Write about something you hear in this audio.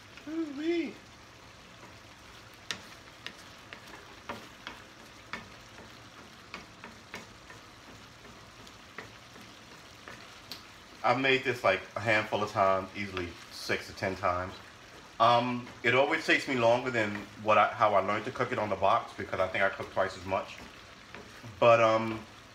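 A wooden spoon scrapes and taps against a pan as food is stirred.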